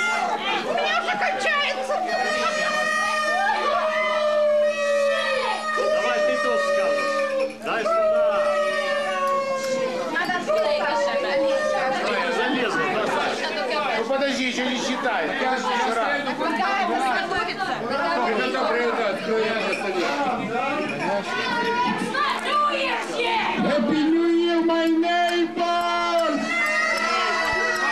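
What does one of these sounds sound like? A crowd of adults chatters and talks over one another.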